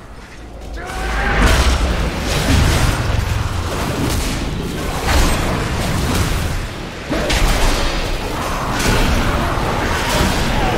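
Game combat effects clash and boom.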